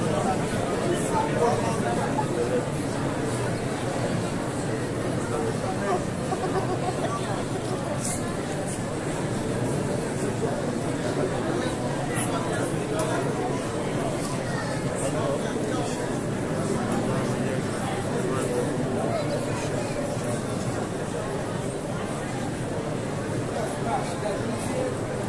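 A dense crowd murmurs and talks all around in a large echoing hall.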